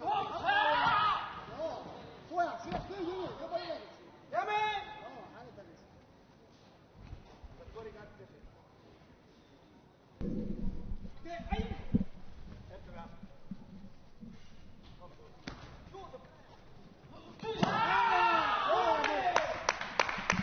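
Young men shout sharply in a large echoing hall.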